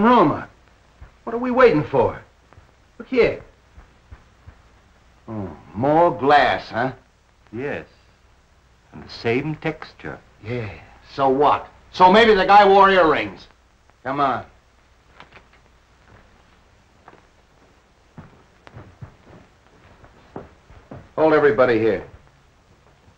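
Men talk calmly in turn, close by.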